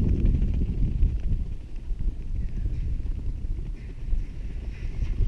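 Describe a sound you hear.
Wind blows hard across open ground.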